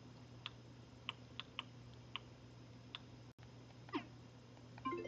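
Short soft clicks tick as a menu cursor moves between items.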